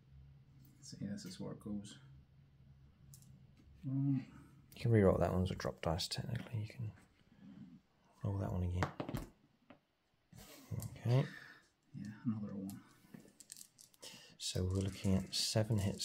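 Small plastic dice clatter and rattle on a table.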